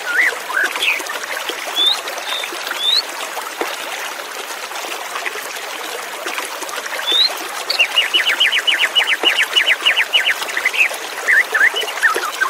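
A white-rumped shama sings in clear whistles and fast trills.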